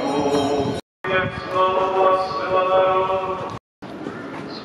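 A man chants through a microphone outdoors.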